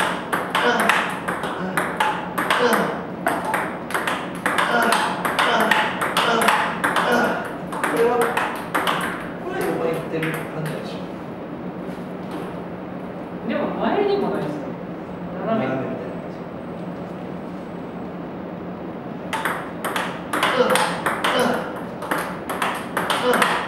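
Table tennis balls bounce on a table.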